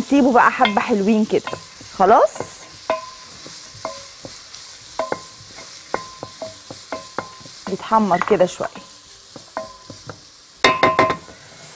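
A wooden spatula scrapes and taps against a pot.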